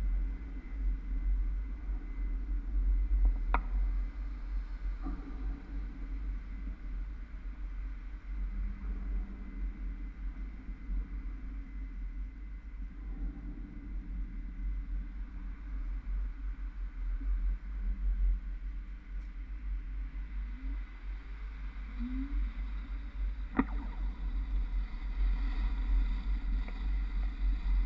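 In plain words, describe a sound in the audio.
Wind rumbles against the recording outdoors.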